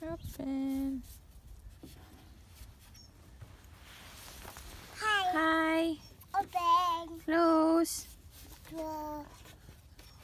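A toddler babbles and squeals in a high voice close by.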